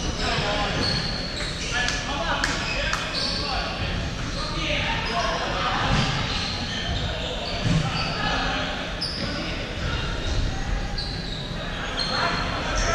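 Shoe soles squeak sharply on a wooden floor in a large echoing hall.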